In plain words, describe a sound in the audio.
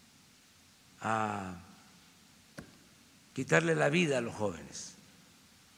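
An elderly man speaks calmly into a microphone in short phrases.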